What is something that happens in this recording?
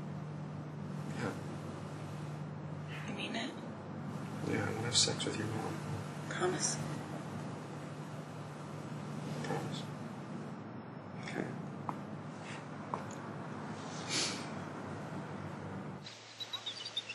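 A young man speaks quietly and seriously, close by.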